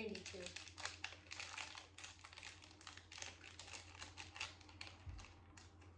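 Wrapping paper crinkles as a girl unwraps a sweet.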